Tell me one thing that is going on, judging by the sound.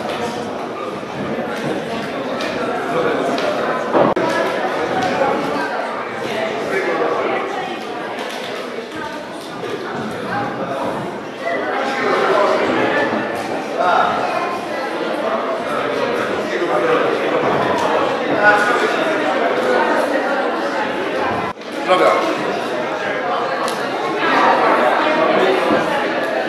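Many people chatter at once in a busy room.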